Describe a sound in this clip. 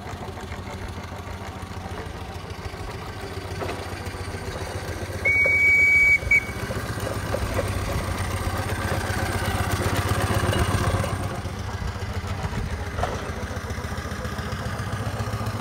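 A small steam engine chugs steadily as it rolls along.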